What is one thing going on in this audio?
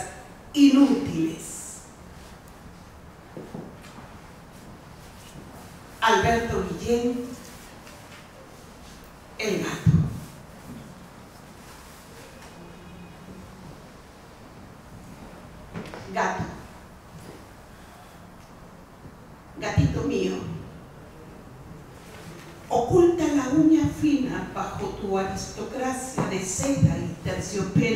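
A middle-aged woman speaks calmly into a microphone in short bursts, with long pauses between.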